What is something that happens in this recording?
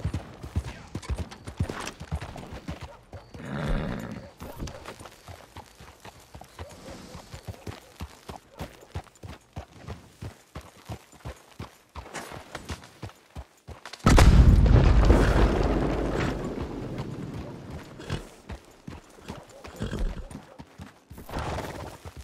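Horse hooves clop steadily on a dirt road.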